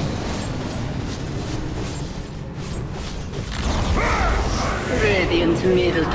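A magic beam roars with a fiery whoosh.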